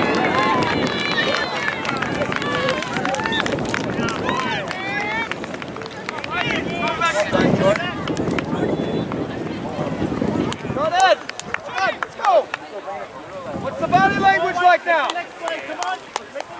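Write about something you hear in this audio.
Young players cheer and shout with excitement outdoors.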